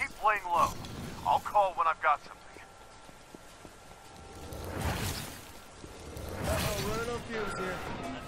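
Fire roars and whooshes in bursts.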